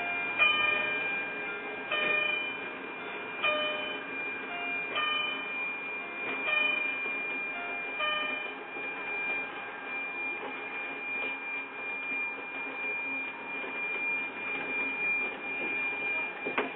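Rain patters on a windscreen.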